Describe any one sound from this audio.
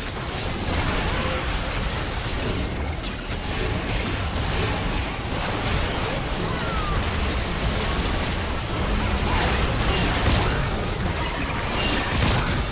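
Game spell effects crackle and blast in a dense battle.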